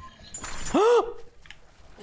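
Ice shatters with a sharp crackle.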